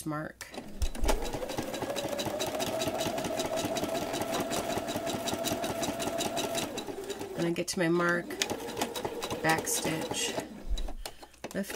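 A sewing machine stitches rapidly with a steady whirring hum.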